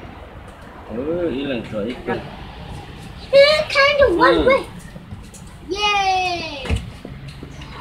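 Young girls talk and exclaim excitedly nearby.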